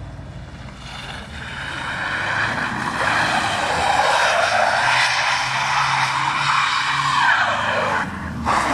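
Tyres squeal loudly on wet asphalt.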